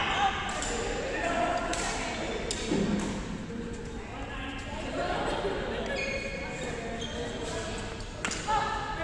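Voices of several women chatter in a large echoing hall.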